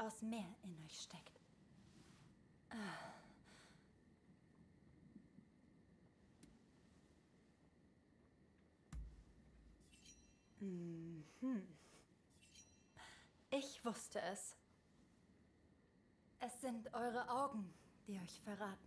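A young woman speaks calmly and softly.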